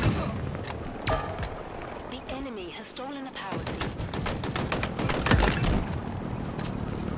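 Guns fire in quick bursts of sharp shots.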